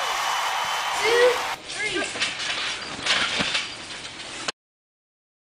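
Children bounce on a creaking trampoline with soft thumps.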